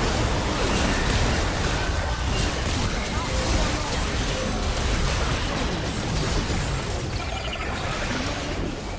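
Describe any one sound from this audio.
Weapon strikes clash repeatedly.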